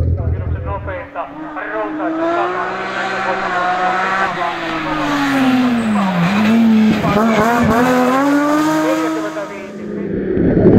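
A rally car engine revs hard, rising and falling in pitch.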